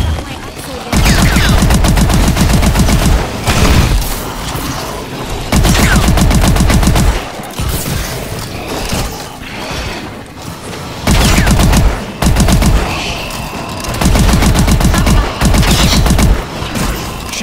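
An automatic rifle fires in rapid loud bursts.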